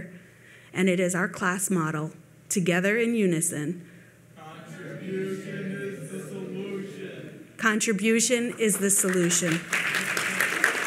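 A middle-aged woman speaks with animation through a microphone in an echoing hall.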